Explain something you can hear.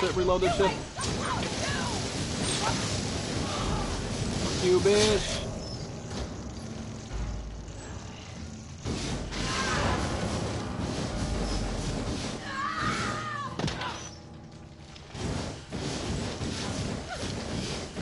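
A flamethrower roars in bursts.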